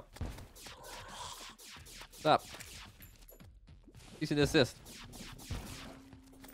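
Video game sound effects whoosh and zap.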